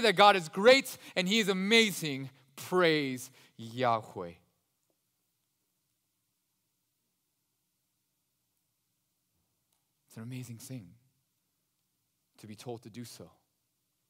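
A man speaks with animation through a microphone, pausing between phrases.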